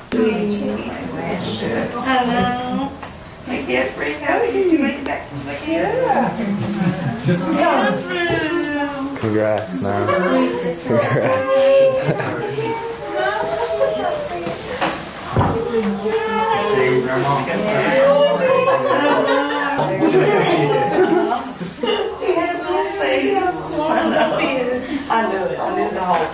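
Several women talk over one another.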